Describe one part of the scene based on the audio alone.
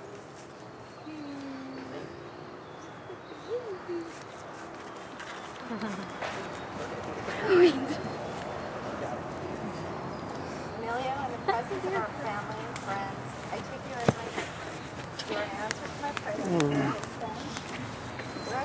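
A woman speaks calmly nearby, outdoors.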